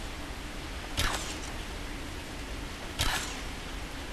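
A bow twangs as arrows are loosed.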